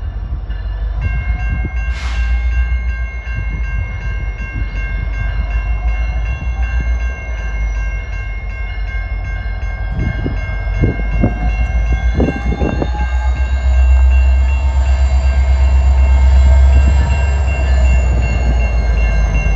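A diesel locomotive rumbles as it approaches, hauling a freight train.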